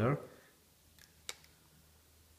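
Two phones tap and click against each other.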